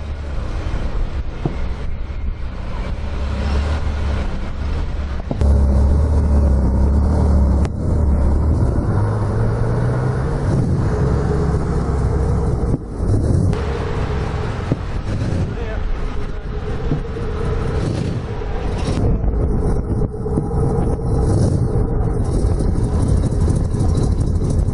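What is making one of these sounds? A powerful car engine rumbles at idle close by.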